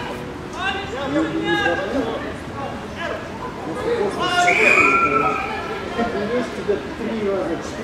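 Several men shout and call out to each other outdoors.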